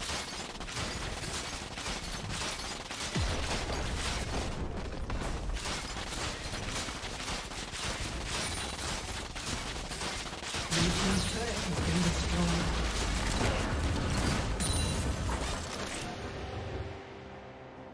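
Video game battle effects crackle, zap and clash rapidly.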